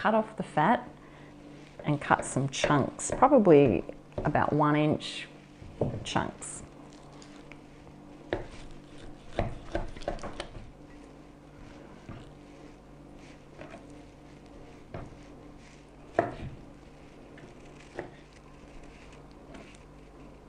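A knife cuts through raw meat on a wooden board.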